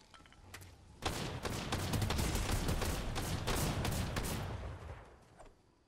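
Footsteps patter quickly through rustling plants.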